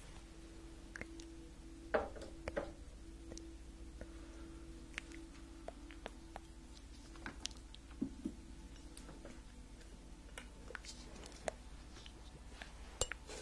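Soft clicks and taps sound sharply close to a microphone.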